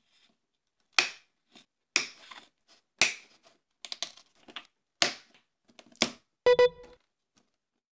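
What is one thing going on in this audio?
Small cutters snip sharply with crisp clicks.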